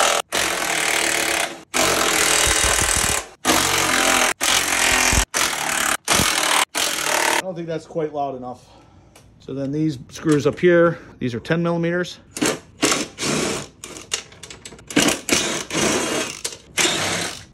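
A cordless drill whirs loudly in short bursts.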